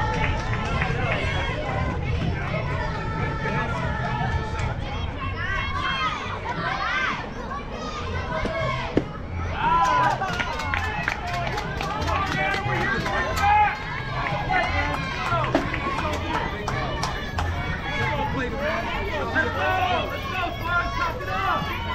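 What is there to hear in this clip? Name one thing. Young girls shout and cheer from nearby, outdoors.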